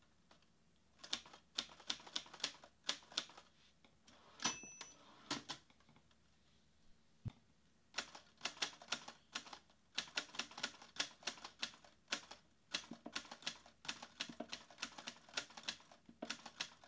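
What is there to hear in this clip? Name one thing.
Keys on a laptop keyboard click in quick bursts.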